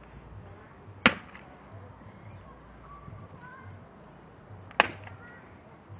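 A shoe stomps hard on a thin device in the grass with a sharp crack.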